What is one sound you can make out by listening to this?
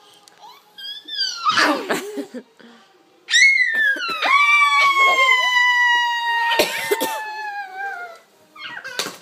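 A toddler squeals and laughs with delight.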